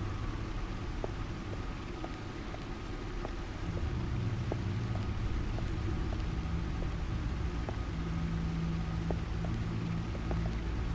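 Footsteps fall on a hard floor.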